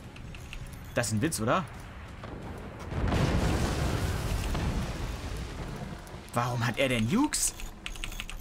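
Rockets whoosh as they launch.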